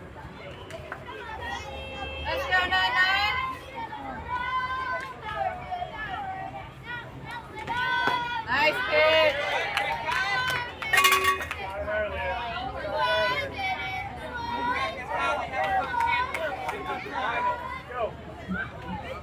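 Young girls chant and cheer loudly outdoors.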